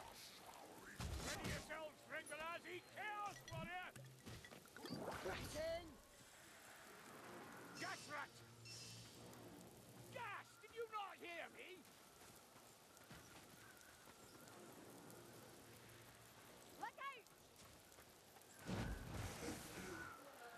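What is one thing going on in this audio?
A heavy metal flail strikes with dull thuds.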